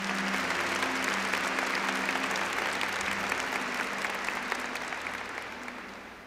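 A large crowd claps and slowly fades.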